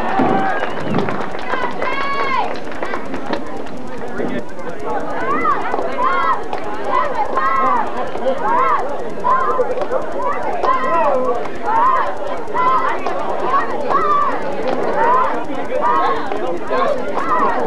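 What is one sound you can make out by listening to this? Young men and boys talk and shout nearby.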